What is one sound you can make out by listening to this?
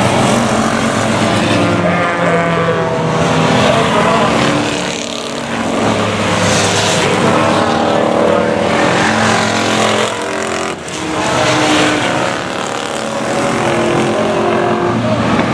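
Race car engines roar and whine as they speed past, rising and falling in pitch.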